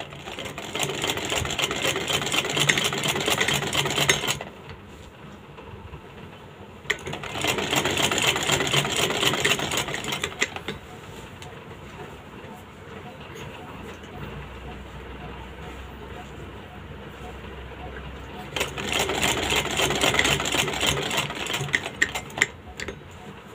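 A sewing machine whirs in bursts, stopping and starting.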